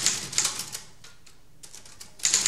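A typewriter clacks as keys are struck.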